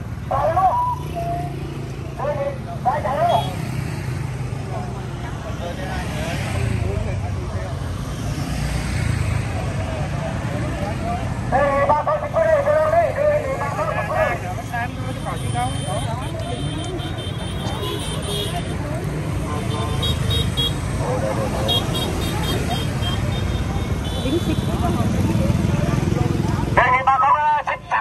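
Motorbike engines hum as the bikes ride past along a road.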